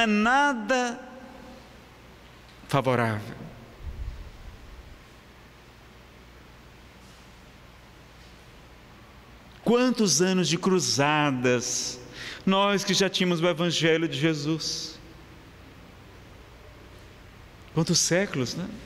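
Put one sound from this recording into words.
A man speaks expressively into a microphone, with long pauses.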